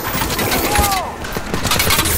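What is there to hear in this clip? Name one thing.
Gunfire cracks in sharp bursts nearby.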